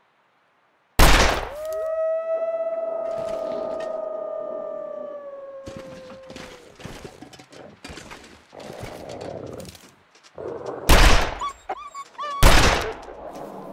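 A revolver fires loud, sharp shots.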